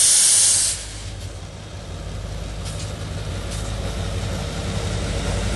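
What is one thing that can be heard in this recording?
A train rolls slowly along the rails.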